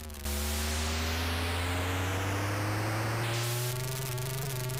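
A harsh electronic hiss of tyres screeches during a drift.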